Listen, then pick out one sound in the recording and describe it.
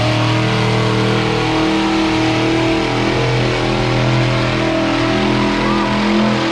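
An engine roars loudly and steadily outdoors.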